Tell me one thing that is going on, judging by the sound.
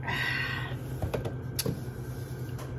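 A glass clinks down onto a hard counter.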